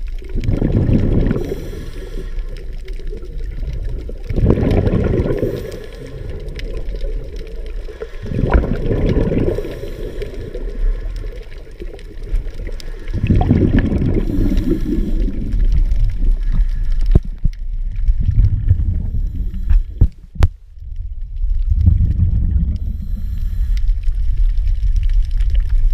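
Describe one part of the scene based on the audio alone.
Water rushes and bubbles in low, muffled surges.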